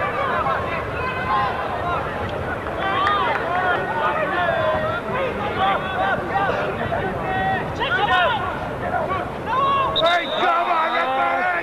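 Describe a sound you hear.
A football crowd shouts and cheers.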